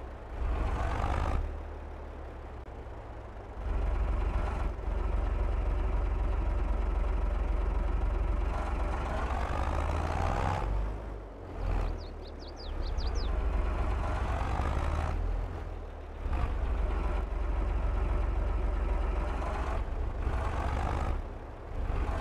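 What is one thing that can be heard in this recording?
A tractor engine rumbles steadily and revs up and down.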